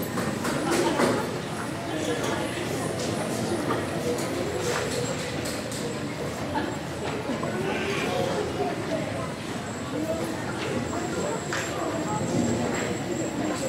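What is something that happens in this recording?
Items knock and clatter as children play.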